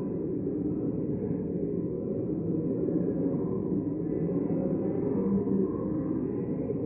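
Many men and women murmur and chat in a large echoing chamber.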